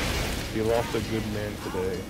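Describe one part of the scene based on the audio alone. A flamethrower roars in a burst of fire.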